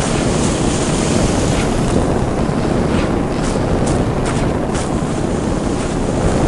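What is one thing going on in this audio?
Lava bubbles and rumbles steadily.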